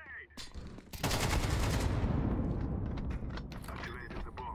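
A smoke grenade bursts with a loud, fading hiss.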